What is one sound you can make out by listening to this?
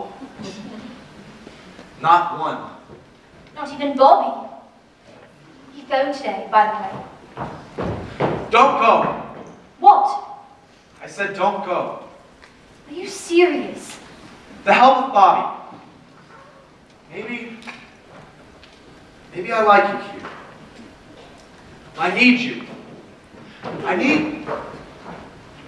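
A man speaks loudly and theatrically on a stage, echoing in a large hall.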